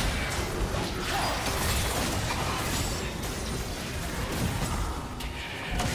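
Game characters' attacks strike with sharp hits.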